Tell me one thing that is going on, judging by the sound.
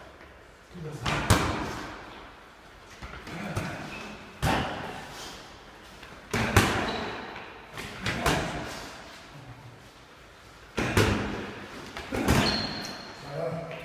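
Boxing gloves thump sharply in an echoing room.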